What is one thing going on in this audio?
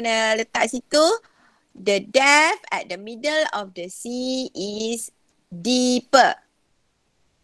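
A young woman speaks calmly through a computer microphone.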